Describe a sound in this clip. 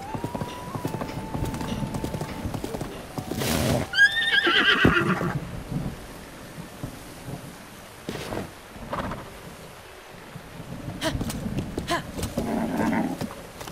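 A horse gallops with quick, thudding hoofbeats.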